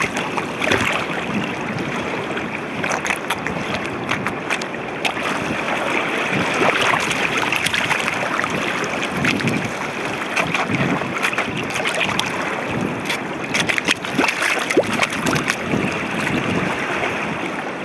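Shoes splash and stomp through shallow flowing water.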